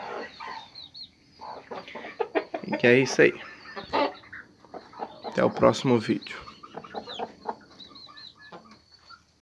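Hens cluck and squawk loudly close by.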